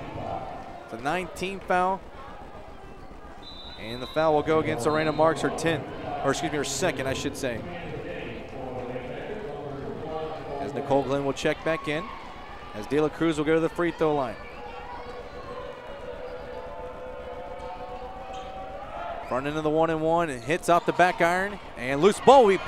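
Spectators shout and cheer in bursts in an echoing gym.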